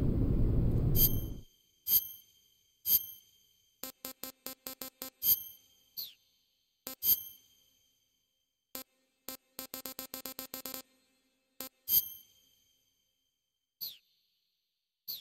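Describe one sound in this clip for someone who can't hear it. Short electronic menu beeps and clicks sound in quick bursts as options are picked.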